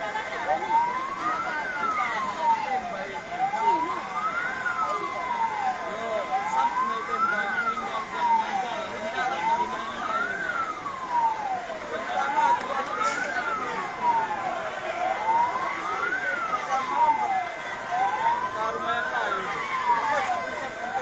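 A crowd of people talks and calls out below.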